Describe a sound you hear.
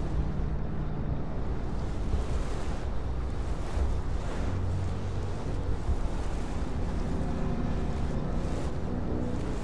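Footsteps tap on paving.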